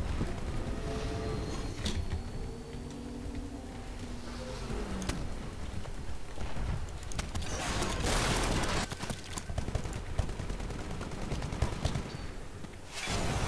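Rifle gunfire rattles in quick bursts.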